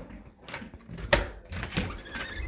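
A front door clicks open.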